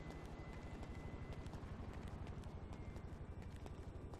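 Footsteps thud on stairs.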